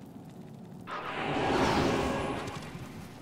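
A magical whoosh swells and fades as a game character teleports.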